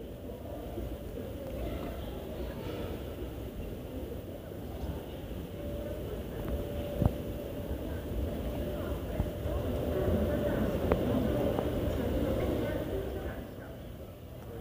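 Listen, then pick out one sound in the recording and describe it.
A moving walkway hums and rumbles steadily.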